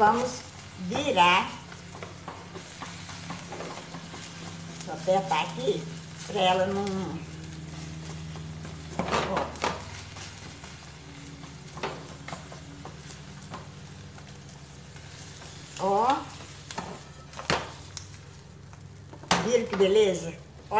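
Food sizzles softly in a frying pan.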